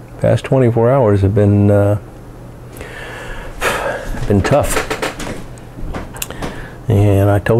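A middle-aged man speaks close to a microphone with a deep, drawn-out voice.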